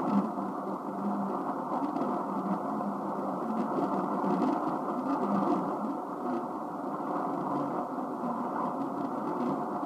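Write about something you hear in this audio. A shortwave radio receiver plays a hissing, crackling band-limited signal through its small loudspeaker.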